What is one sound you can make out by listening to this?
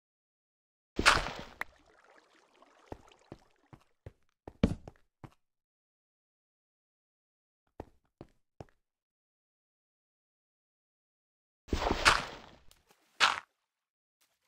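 Blocks crack and break with short knocks.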